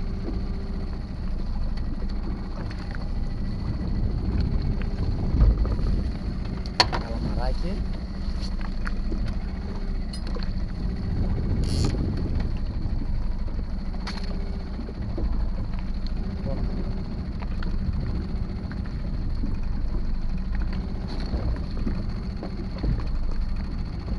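An outboard motor hums steadily.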